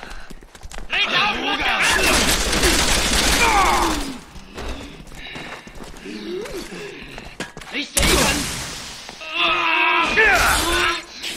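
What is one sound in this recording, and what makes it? Men shout and grunt nearby.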